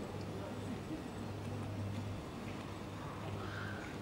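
A gorilla chews leafy greens with soft crunching.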